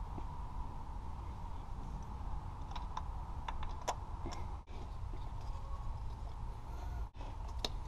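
Metal parts clink and tap against an engine.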